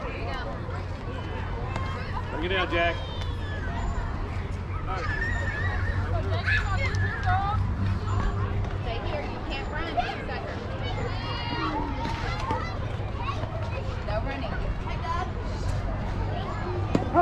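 Young players and spectators shout and cheer outdoors.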